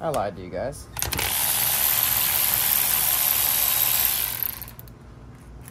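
A cordless ratchet whirs loudly as it spins out a bolt.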